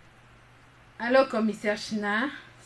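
A young woman talks cheerfully on a phone nearby.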